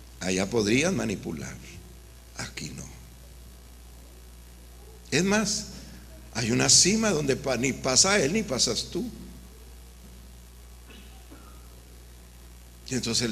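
An older man speaks with animation into a microphone, in bursts with pauses.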